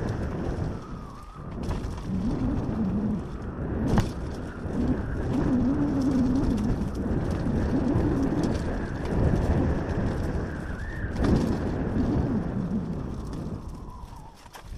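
A dirt bike engine revs up and down on a rough trail.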